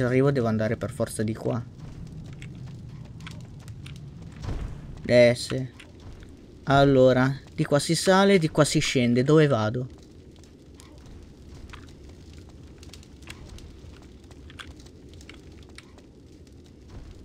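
Footsteps patter quickly on stone.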